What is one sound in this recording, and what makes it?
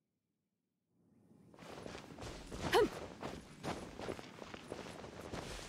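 Quick footsteps patter over grass.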